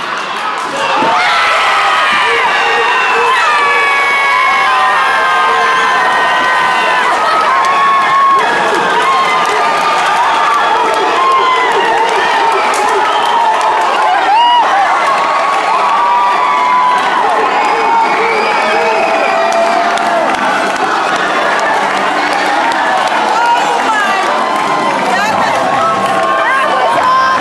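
A crowd cheers and screams loudly in an echoing gym.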